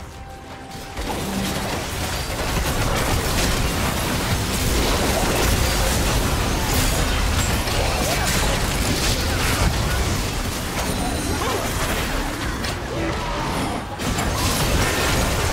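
Magic blasts crackle and boom in a busy fantasy battle.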